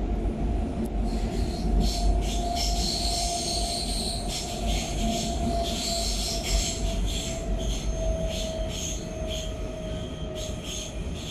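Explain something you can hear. Metal parts of the carriage rattle and squeak.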